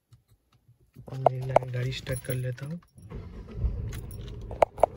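A car engine starts and idles.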